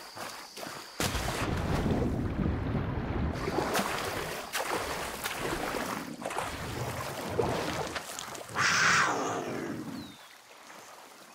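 Water splashes and gurgles as someone swims through it.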